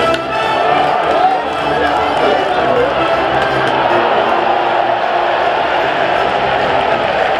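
Brass horns play a loud fight song nearby.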